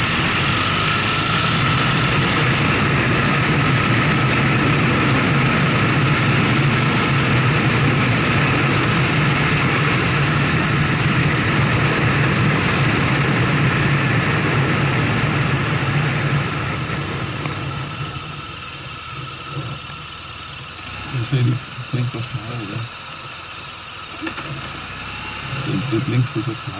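A motorcycle engine hums steadily, then quietens as the motorcycle slows.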